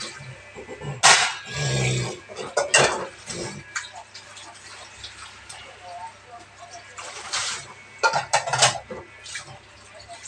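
Ceramic bowls clink against each other.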